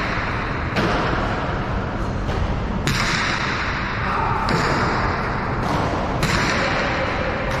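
A hard ball smacks against a wall, echoing loudly around a large hall.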